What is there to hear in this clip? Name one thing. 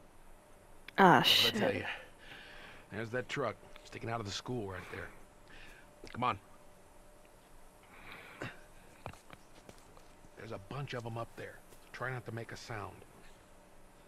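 A man speaks in a low, hushed voice close by.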